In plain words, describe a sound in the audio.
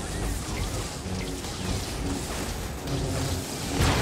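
Metal crashes and explodes as a walker is struck.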